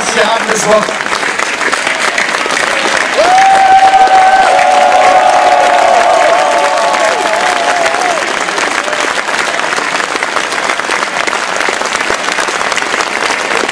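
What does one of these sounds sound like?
A crowd applauds steadily outdoors.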